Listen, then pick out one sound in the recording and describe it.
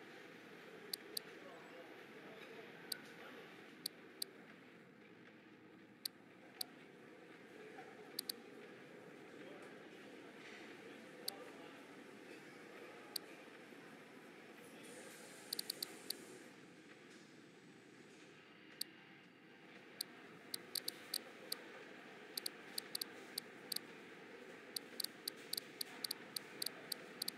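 Short, sharp menu clicks tick again and again, coming faster toward the end.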